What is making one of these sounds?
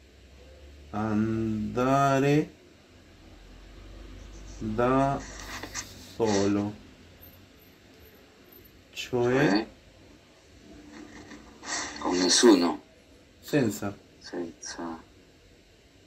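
A man speaks slowly over an online call, pausing between short phrases.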